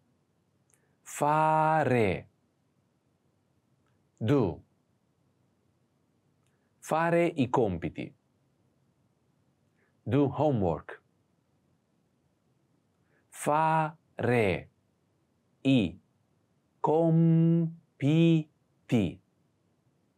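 A man speaks clearly and slowly into a close microphone, in short phrases with pauses.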